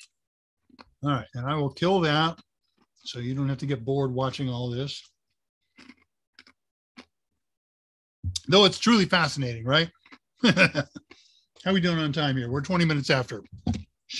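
An older man talks calmly over an online call.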